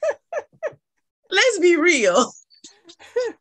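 A woman laughs brightly over an online call.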